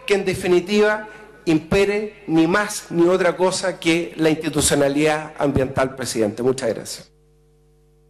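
A middle-aged man speaks forcefully through a microphone in a large hall.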